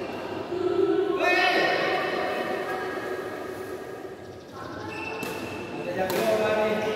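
A racket strikes a shuttlecock with a light pop.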